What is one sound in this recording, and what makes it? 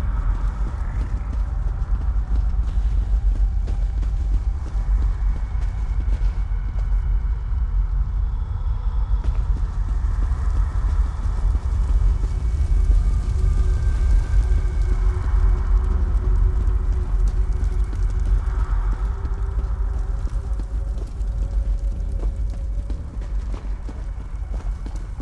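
Footsteps thud on stone as a figure runs.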